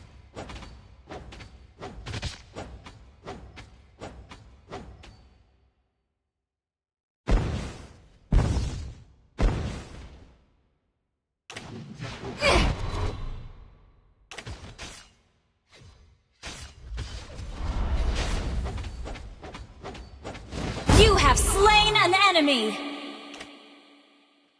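Game attack and spell effects crack and whoosh in quick bursts.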